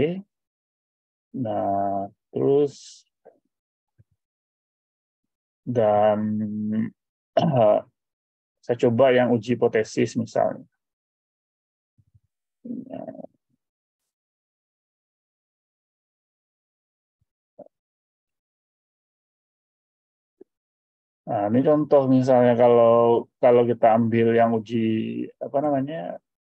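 A man speaks calmly over an online call, pausing often.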